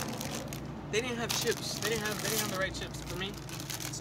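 A chip bag crinkles as a young man opens it.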